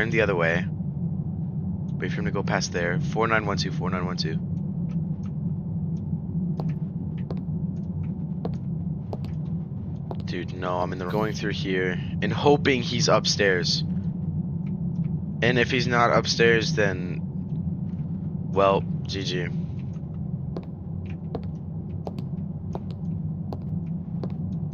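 Footsteps tread slowly on a hard stone floor.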